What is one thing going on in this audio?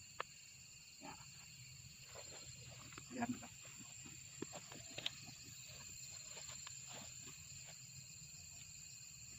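Grass and leaves rustle as a man walks through them.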